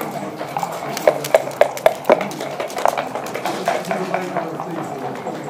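Dice rattle in a cup and clatter onto a wooden board.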